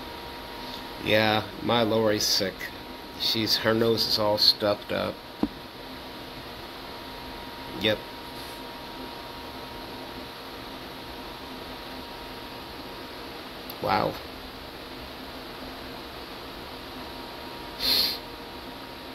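A man speaks close to a microphone in short bursts, with long pauses.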